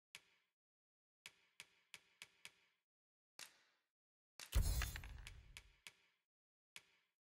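Soft menu clicks tick repeatedly.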